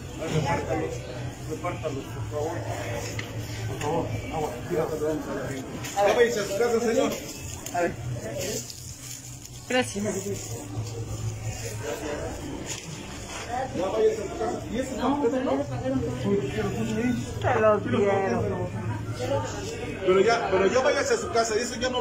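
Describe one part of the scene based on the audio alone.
Men and women talk nearby, with voices overlapping.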